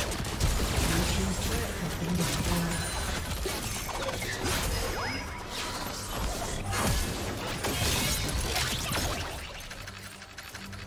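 Magic spells whoosh and crackle during a fast fight.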